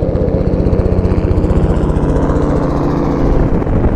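A helicopter's rotor thumps.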